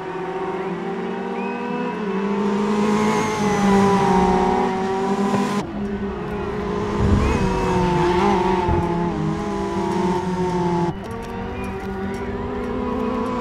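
Racing car engines roar loudly and shift pitch as the cars speed past.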